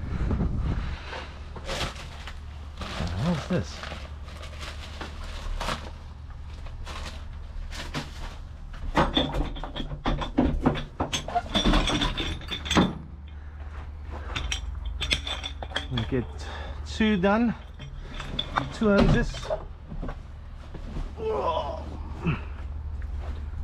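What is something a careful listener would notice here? Metal fittings and hoses clank and rattle as they are moved by hand.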